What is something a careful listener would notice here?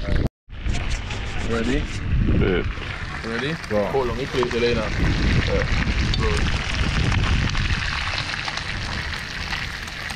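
Fish sizzle in a pan over a fire.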